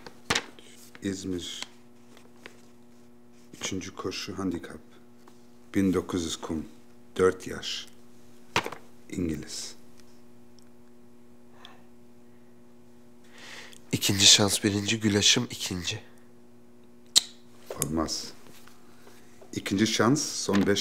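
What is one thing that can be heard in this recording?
A middle-aged man speaks calmly and wryly, close by.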